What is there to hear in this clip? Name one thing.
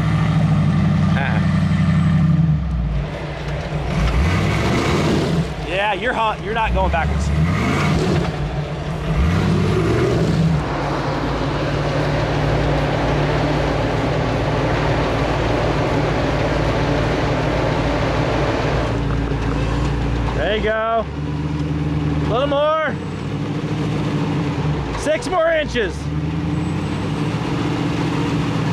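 An engine rumbles steadily close by.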